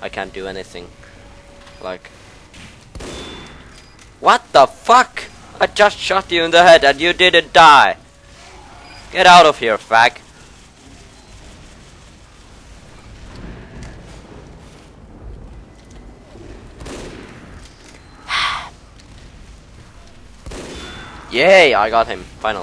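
A sniper rifle fires a few sharp shots.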